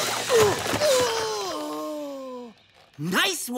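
A boy groans in pain.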